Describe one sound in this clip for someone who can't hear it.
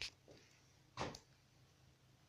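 A glass bottle knocks against a table as it is picked up.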